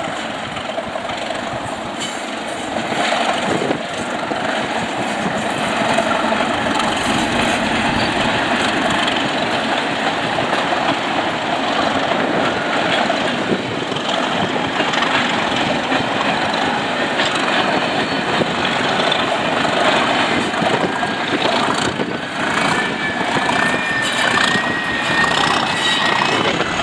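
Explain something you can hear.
Train wheels clatter and rumble along the rails.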